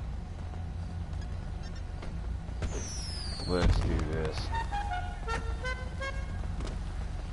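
Footsteps walk across pavement.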